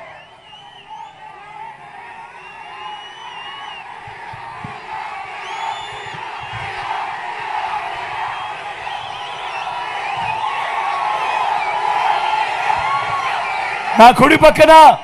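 A large crowd cheers and shouts outdoors, growing louder.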